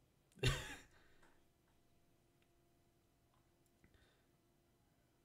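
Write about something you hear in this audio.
A young man laughs softly close to a microphone.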